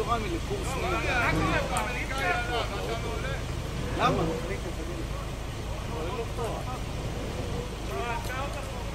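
A man calls out directions from nearby outdoors.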